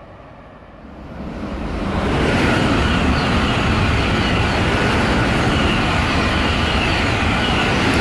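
A high-speed train rushes past close by with a loud, rising roar.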